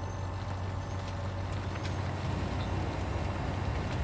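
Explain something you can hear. Manure pours out of a trailer with a soft rushing.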